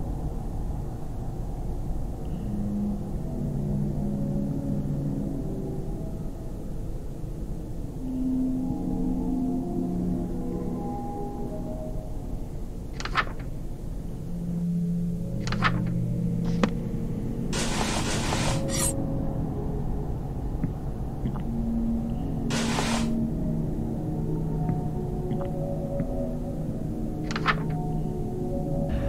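Soft, slow game music plays throughout.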